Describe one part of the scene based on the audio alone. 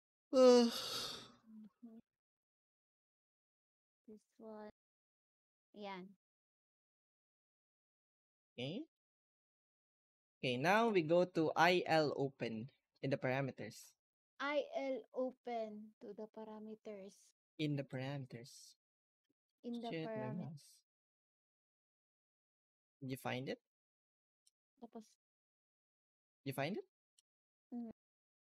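A young woman talks with animation through a microphone, in bursts with pauses.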